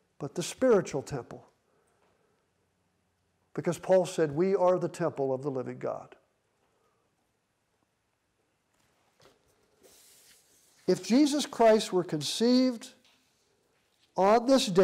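An elderly man speaks calmly and closely, in short phrases with pauses.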